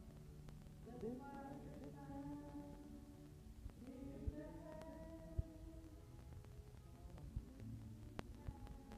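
A woman sings close by.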